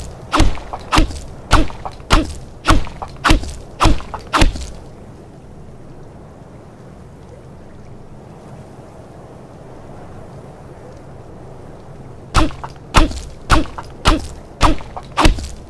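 A pickaxe strikes rock in steady, repeated blows.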